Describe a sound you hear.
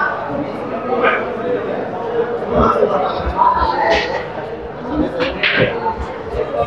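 Pool balls click against each other.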